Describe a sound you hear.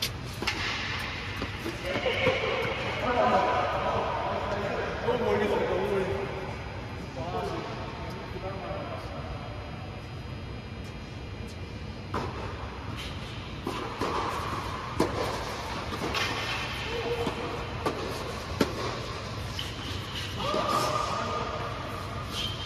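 Men talk and call out across the court, heard from a distance.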